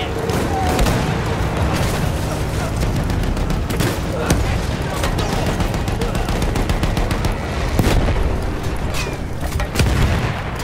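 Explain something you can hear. A tank engine rumbles and its tracks clank steadily.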